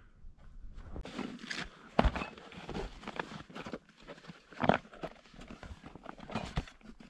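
Tent fabric and a bag rustle.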